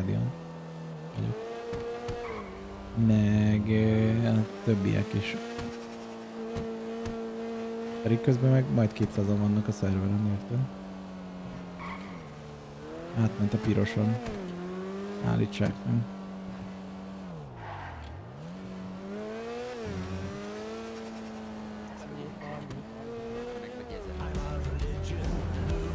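A car engine roars steadily, rising and falling in pitch as it speeds up and shifts gears.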